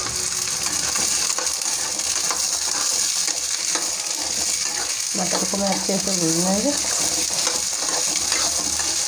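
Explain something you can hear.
A spatula scrapes and stirs peas in a metal pan.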